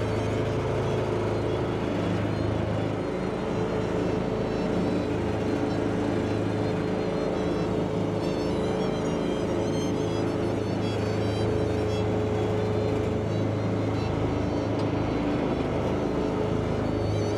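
A combine harvester's cutting and threshing machinery rattles and whirs.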